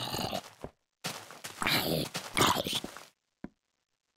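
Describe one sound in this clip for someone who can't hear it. A zombie groans loudly nearby.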